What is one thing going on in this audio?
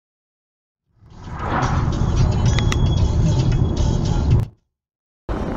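A car engine hums while driving along a road.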